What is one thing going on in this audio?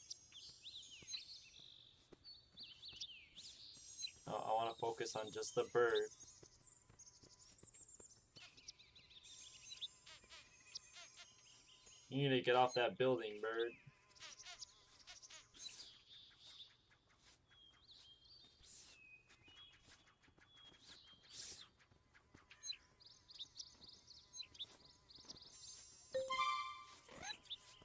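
Bright, playful game chimes and chirps sound on and off.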